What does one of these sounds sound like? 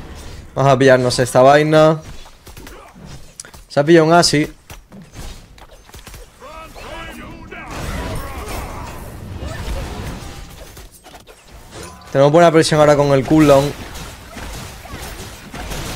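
Magic blasts and weapon hits sound in a video game.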